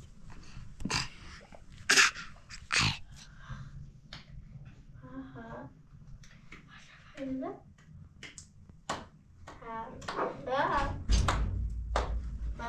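A baby babbles and squeals.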